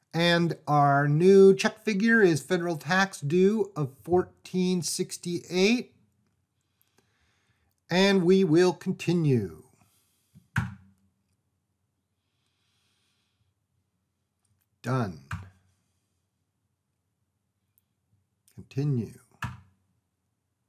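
An elderly man speaks calmly into a close microphone, in short bursts.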